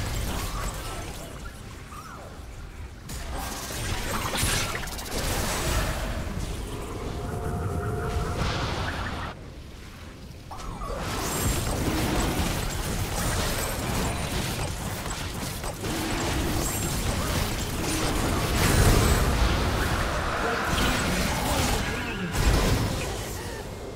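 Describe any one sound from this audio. Magic spell effects whoosh and crackle in a fast fight.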